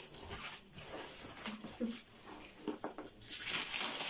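Cardboard scrapes as a package is lifted from a box.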